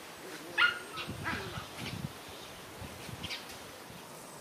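Puppies growl playfully.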